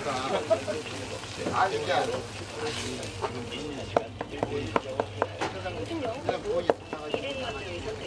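Bread sizzles softly on a hot griddle.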